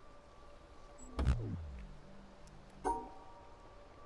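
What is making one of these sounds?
A short electronic tone sounds as a puzzle line is cleared.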